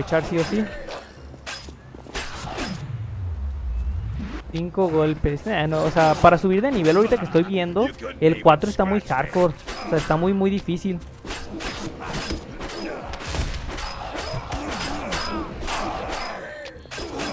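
Blades slash and strike in quick, sharp blows.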